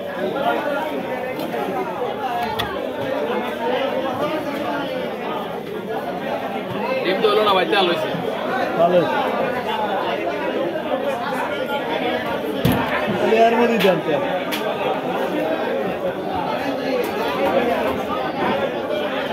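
A blade slices and scrapes through fish flesh.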